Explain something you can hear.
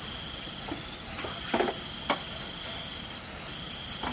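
Bamboo tubes knock on a wooden table.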